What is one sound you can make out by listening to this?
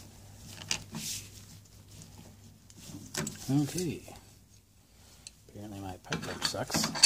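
Metal pliers clink and scrape against a metal part.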